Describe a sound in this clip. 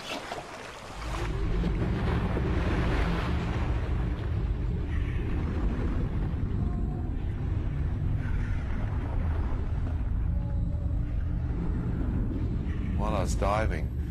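Water churns with a low, muffled rumble.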